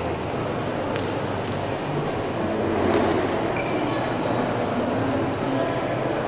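A ping-pong ball bounces on a table.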